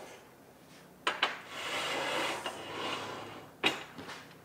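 A large metal sheet slides and scrapes across a metal frame.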